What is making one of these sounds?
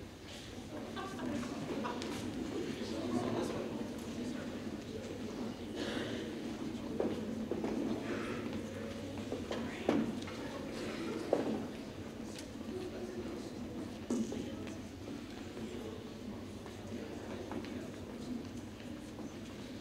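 Footsteps shuffle on a stage floor.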